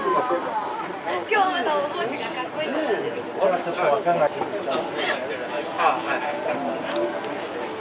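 A woman laughs and talks cheerfully up close.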